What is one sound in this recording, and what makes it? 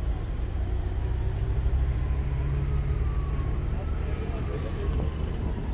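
A car engine hums as a car drives slowly past.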